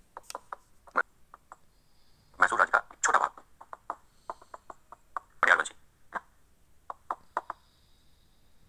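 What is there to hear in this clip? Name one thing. A man speaks calmly, as if teaching, with short pauses.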